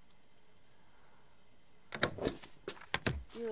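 A mechanical tray slides open with a clunk.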